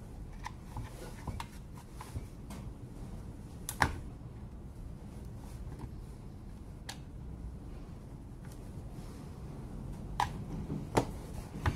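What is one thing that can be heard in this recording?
A screwdriver scrapes and clicks against a plastic tool housing.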